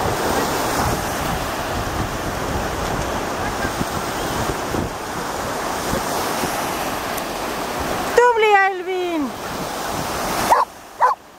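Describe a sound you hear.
Small waves wash onto a shore.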